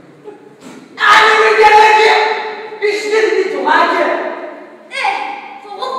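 A young woman speaks loudly and with animation in an echoing hall.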